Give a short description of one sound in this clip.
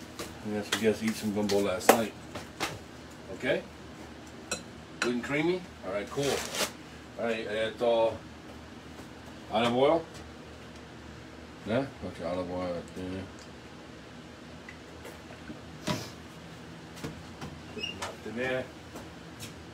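A middle-aged man talks casually close by.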